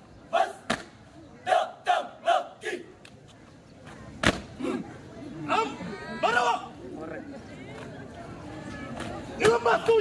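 Boots stamp on a hard court in unison.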